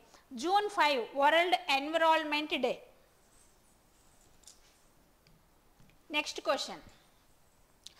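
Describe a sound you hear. A woman speaks clearly and with animation into a close microphone.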